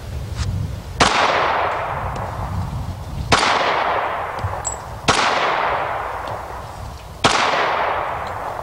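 A pistol fires single shots outdoors, each ringing out and fading slowly.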